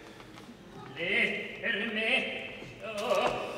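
A man speaks up loudly and with emphasis in a large hall.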